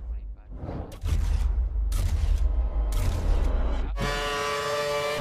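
A racing car roars past with a deep rumble.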